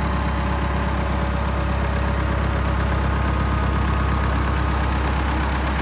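A tractor's diesel engine idles with a steady, rapid chugging close by.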